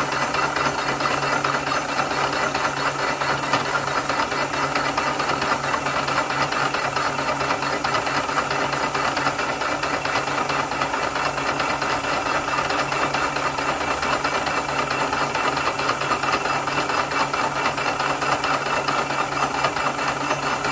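A milling cutter grinds steadily through metal with a harsh, gritty whine.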